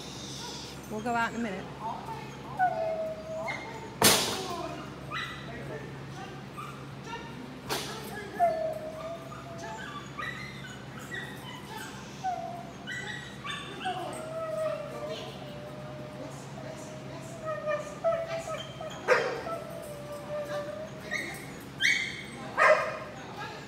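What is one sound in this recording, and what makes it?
A woman gives commands to a dog, her voice echoing in a large hall.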